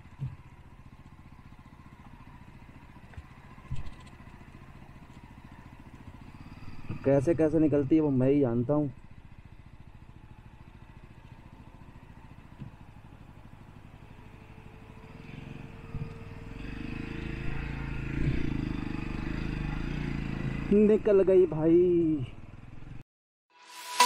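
A motorcycle engine runs with a low rumble.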